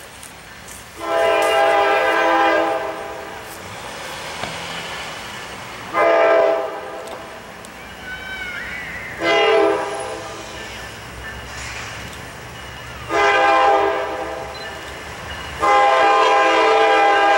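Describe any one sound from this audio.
A train horn sounds in long, loud blasts nearby.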